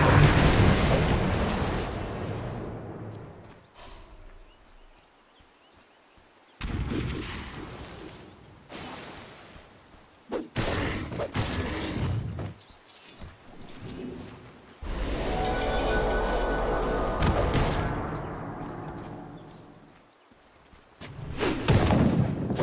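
Magic spells crackle and boom in bursts of battle.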